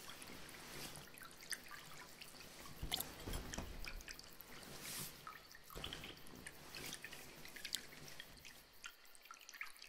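A plastic sheet rustles and crinkles close by.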